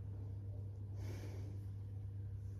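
A woman breathes out heavily close by.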